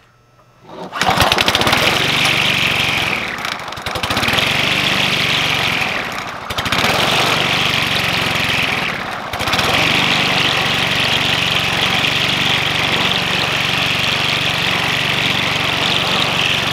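A lawn mower engine starts and runs loudly and steadily nearby.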